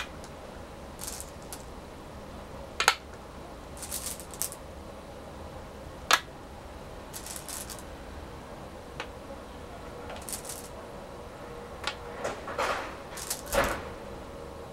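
Stones rattle and clack in a bowl.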